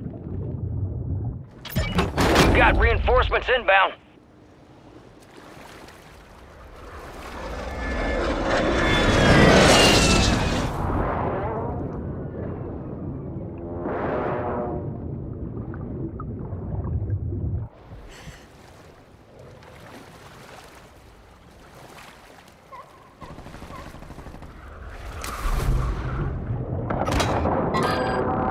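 Bubbles gurgle and burble underwater.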